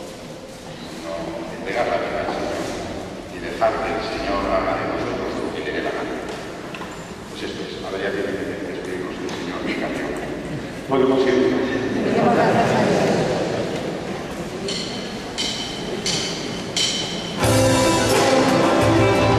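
A group of men sing together in a large, echoing hall.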